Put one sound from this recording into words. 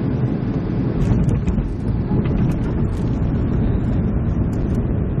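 Wheels thump and rumble on touching down on the runway.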